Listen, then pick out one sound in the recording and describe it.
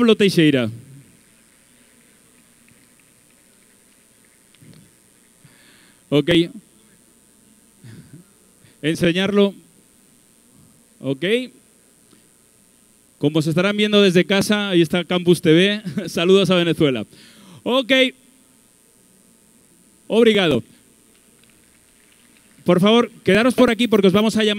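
A man speaks with animation through a microphone over loudspeakers in a large hall.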